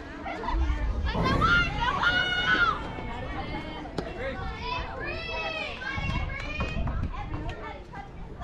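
Young women shout and cheer outdoors.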